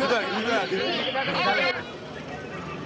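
A crowd of young men chatters and laughs close by.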